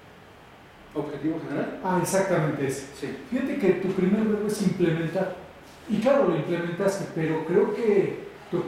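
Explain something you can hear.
A man speaks clearly and steadily in a room.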